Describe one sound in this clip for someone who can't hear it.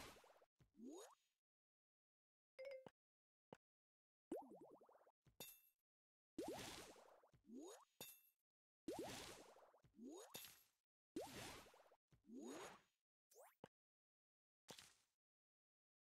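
Game blocks pop and burst with bright chiming effects.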